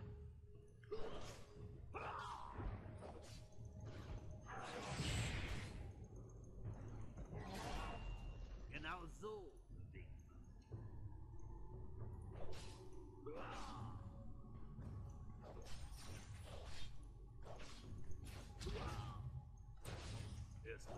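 Video game spell effects whoosh and crackle in quick bursts during a battle.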